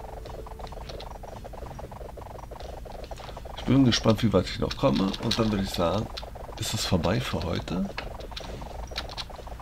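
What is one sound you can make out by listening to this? Quick cartoon hit sounds patter rapidly.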